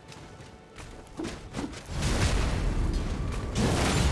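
A sword clashes against armour in quick blows.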